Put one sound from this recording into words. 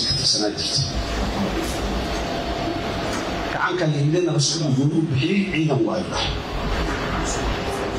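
A middle-aged man speaks with animation into a microphone, heard through loudspeakers.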